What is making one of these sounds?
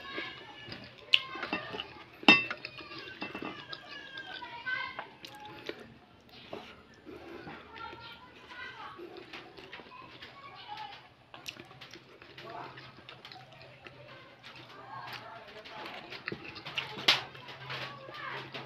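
A man chews food noisily up close.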